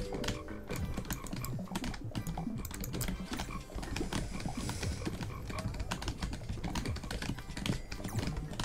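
Game sound effects pop and chime rapidly.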